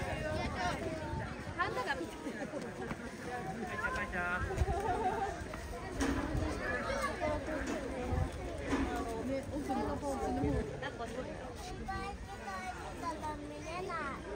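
Several people chatter nearby outdoors.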